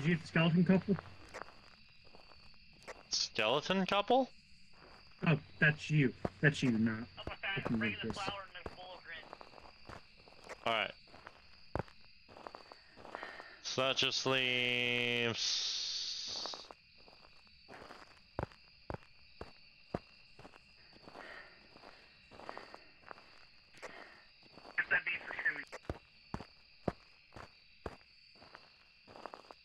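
Footsteps crunch on a forest path.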